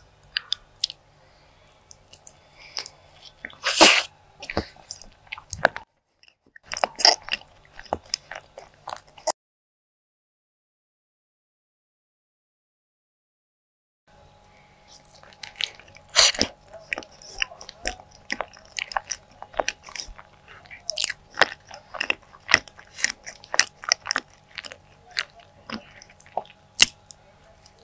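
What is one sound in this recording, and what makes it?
A person chews soft, sticky food with wet smacking sounds close to a microphone.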